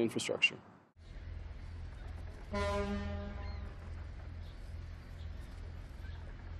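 A crane motor hums steadily.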